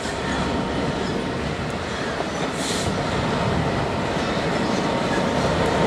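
A diesel locomotive rumbles past, its engine droning.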